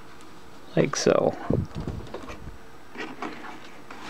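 Paper rustles as it is slid into a printer tray.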